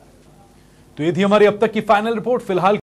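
A man speaks loudly and briskly into a microphone.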